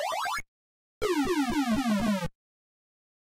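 A retro arcade game plays a short, falling electronic warble.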